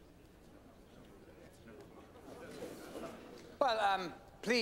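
A crowd murmurs quietly in a large hall.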